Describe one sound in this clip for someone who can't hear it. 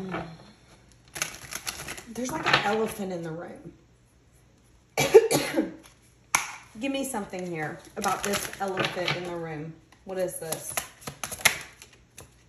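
Playing cards rustle and slap as they are shuffled by hand.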